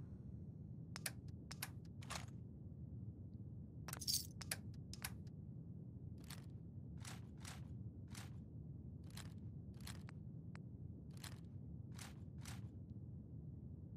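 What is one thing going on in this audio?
Soft clicks tick as a menu scrolls.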